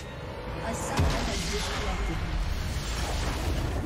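A deep magical explosion booms and rumbles.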